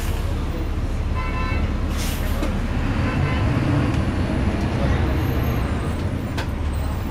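A bus interior rattles and creaks.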